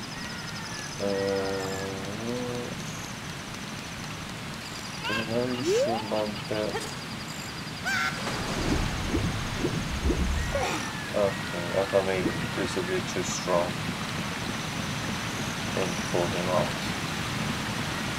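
A man talks calmly into a nearby microphone.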